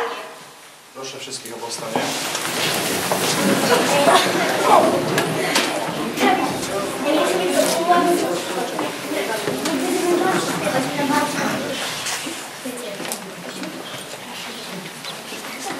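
Many children chatter in an echoing room.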